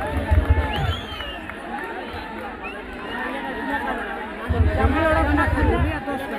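Men talk and call out to each other nearby.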